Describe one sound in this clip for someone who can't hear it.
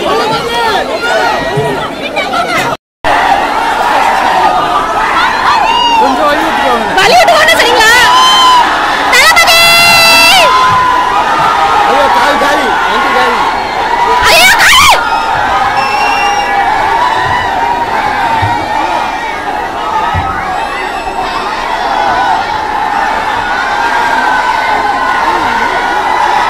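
A large crowd of men and women shouts and clamours close by.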